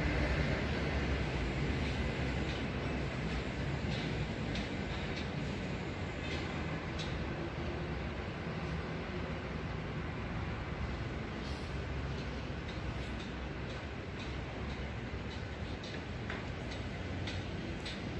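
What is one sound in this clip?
Wind blows steadily and rumbles outdoors.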